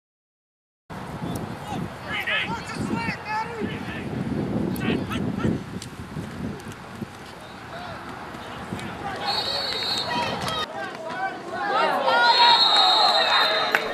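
Football players collide and thud into each other in a tackle.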